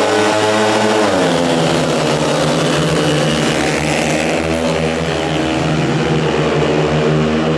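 Motorcycles roar off together and speed away.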